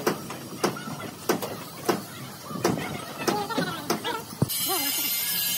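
Metal clanks and knocks as a vehicle cab is pushed.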